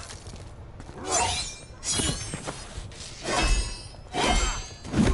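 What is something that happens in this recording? Heavy hits and crashes thump loudly.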